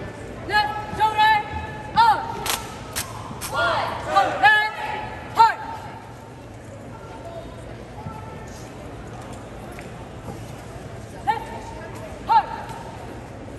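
A man shouts drill commands loudly in a large echoing hall.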